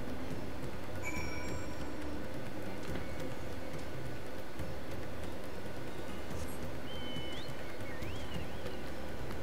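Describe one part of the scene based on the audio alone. A game plays short electronic chimes.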